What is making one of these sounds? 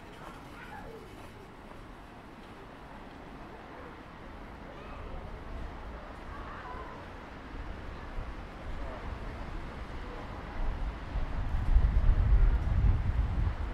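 Distant voices of passersby murmur outdoors.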